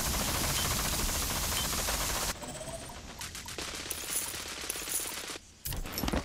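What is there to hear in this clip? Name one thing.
Menu buttons click.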